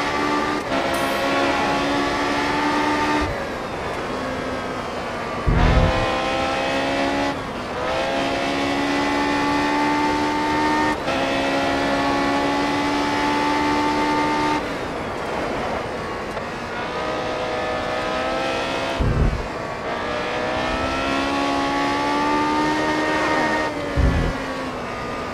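A racing car engine screams at high revs, rising in pitch as it speeds up and dropping with each gear change and braking.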